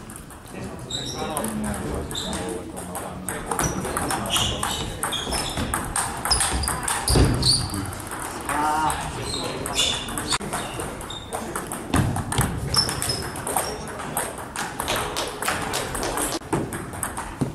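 Ping pong balls click rapidly on tables and paddles.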